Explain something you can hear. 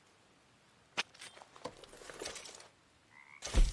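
A knife scrapes and rustles against something close by.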